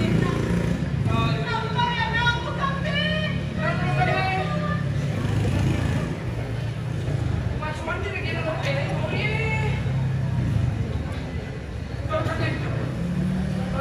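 A woman sings through a loudspeaker in a large hall.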